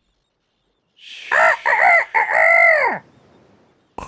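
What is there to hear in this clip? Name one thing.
A rooster crows.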